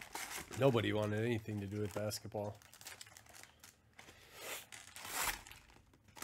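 A cardboard box flap is pulled open.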